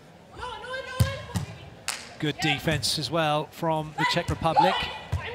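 Hands strike a volleyball with sharp slaps.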